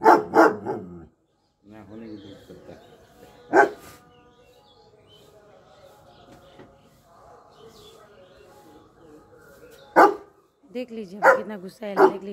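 A large dog barks loudly and sharply several times, close by.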